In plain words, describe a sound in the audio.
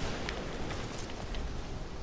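A rifle bolt clacks as it is worked.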